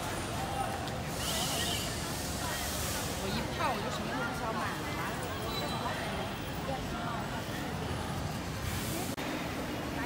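A busy crowd of people chatters outdoors.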